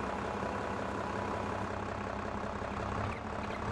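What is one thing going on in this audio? A tractor's hydraulic loader whines as the arm lifts.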